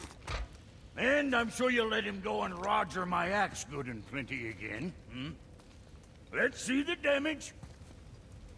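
A man speaks with animation, his voice deep and gruff.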